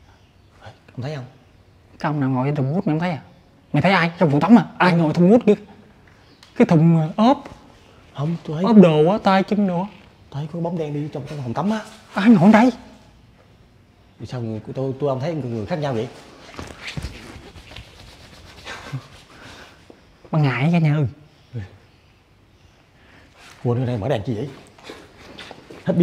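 A young man talks with animation close by, in an echoing room.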